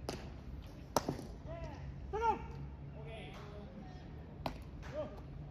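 A baseball smacks into a catcher's mitt.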